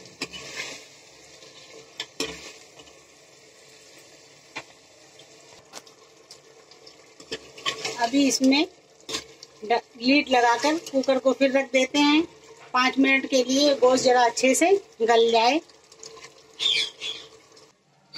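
A metal ladle scrapes and clinks against a metal pot.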